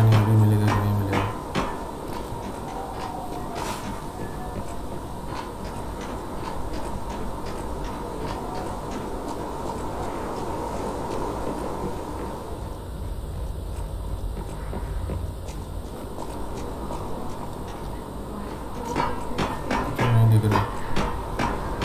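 Hands and feet clank on a metal ladder.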